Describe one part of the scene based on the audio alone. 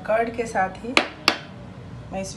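A glass bowl clinks as it is set down on a counter.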